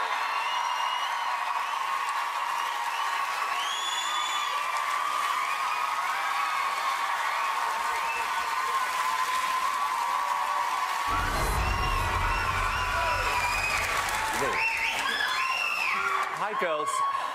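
A large crowd cheers and screams in a big echoing hall.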